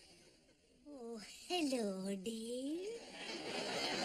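An elderly woman speaks in a high voice.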